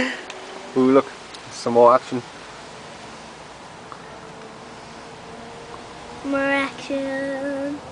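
A bee buzzes loudly close by in short bursts.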